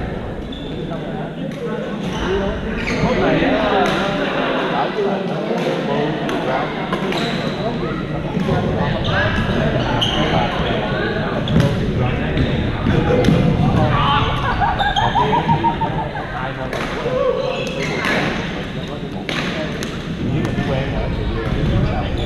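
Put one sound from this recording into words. Paddles hit a ball with sharp pops in a large echoing gym.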